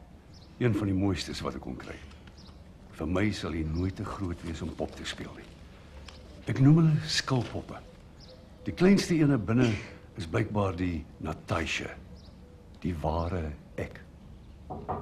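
A young woman speaks calmly, reading out.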